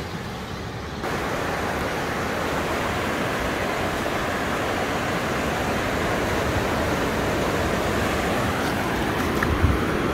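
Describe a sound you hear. Waves wash steadily up the shore.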